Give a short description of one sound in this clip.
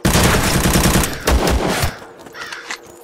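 Rapid gunfire cracks.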